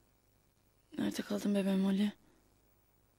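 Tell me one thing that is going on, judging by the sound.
A woman speaks quietly on a phone.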